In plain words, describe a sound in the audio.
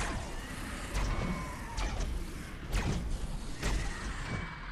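Heavy explosions boom in sharp bursts.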